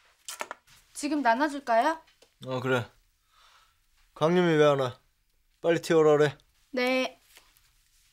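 A young woman speaks close by in a high, questioning voice.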